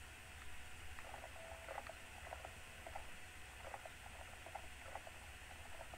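A creature's paws patter quickly on a dirt path.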